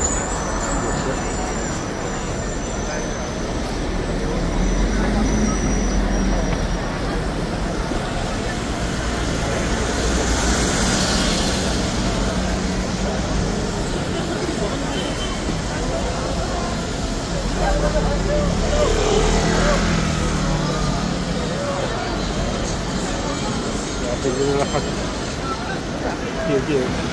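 A busy crowd murmurs all around.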